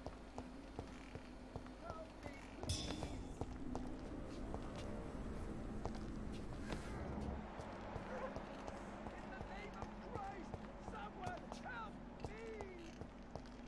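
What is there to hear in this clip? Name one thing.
Footsteps walk on stone.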